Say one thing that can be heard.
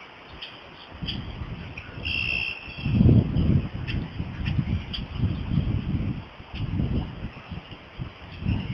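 Wind gusts buffet the microphone outdoors.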